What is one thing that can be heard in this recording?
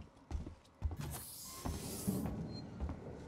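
A sliding door hisses open.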